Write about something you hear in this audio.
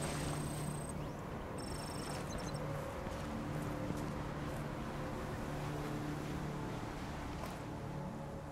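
Footsteps thud on wooden planks.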